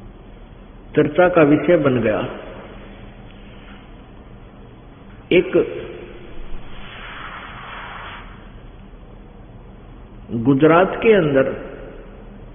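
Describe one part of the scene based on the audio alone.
A man chants in a raised voice.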